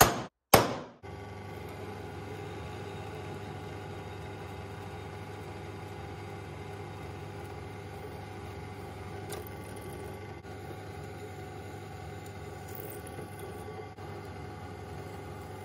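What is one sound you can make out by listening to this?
A drill press hums steadily as it drills into metal.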